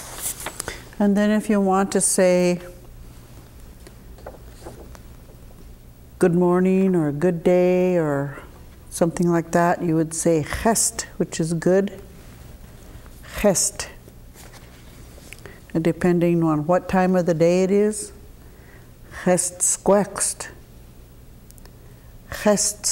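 An elderly woman speaks slowly and clearly, sounding out words close to a microphone.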